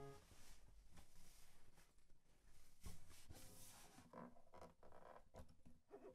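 A woman strums an acoustic guitar.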